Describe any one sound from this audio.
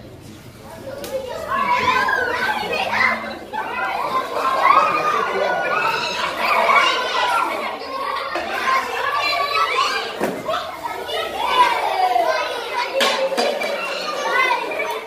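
A group of children shout and cheer excitedly in an echoing hall.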